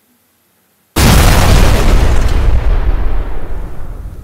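Flames burst out with a loud, roaring whoosh that slowly fades.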